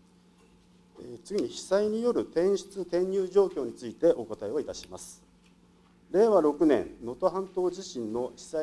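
A middle-aged man speaks formally into a microphone.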